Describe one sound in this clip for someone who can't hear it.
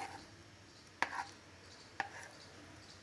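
A spoon clinks against a metal tin.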